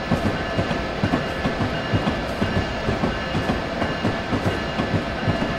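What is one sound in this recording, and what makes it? Train wheels click and thump rhythmically over rail joints.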